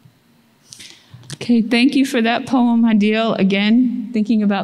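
An older woman speaks steadily into a microphone.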